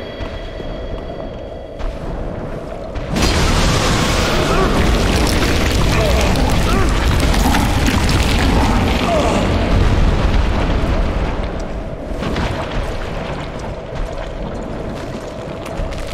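A blade slashes and strikes with heavy thuds.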